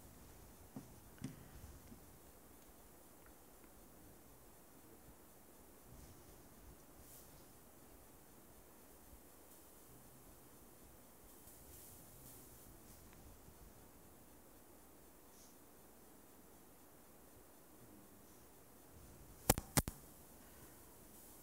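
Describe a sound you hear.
A computer mouse clicks softly now and then.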